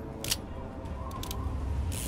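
A revolver's cylinder clicks as it is reloaded.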